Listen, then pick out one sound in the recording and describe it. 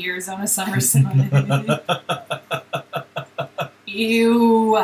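A man laughs heartily in short bursts.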